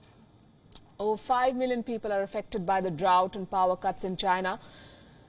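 A woman speaks calmly and clearly through a microphone.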